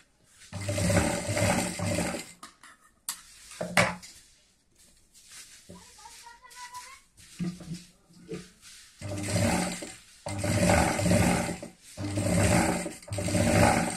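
A sewing machine runs in fast bursts, stitching with a rapid rattle.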